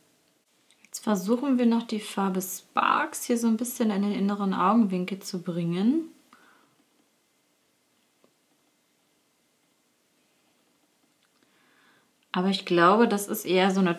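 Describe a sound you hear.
A young woman talks calmly and closely into a microphone.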